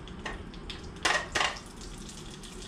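An egg cracks on the rim of a pan.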